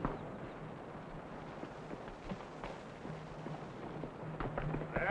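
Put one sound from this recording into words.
Horses' hooves clop on a dirt track.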